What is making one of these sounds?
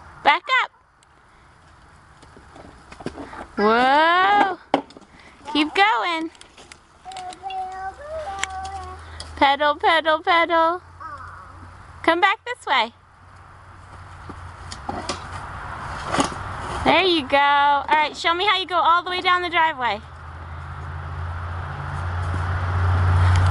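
Plastic wheels roll and crunch over dry pine needles.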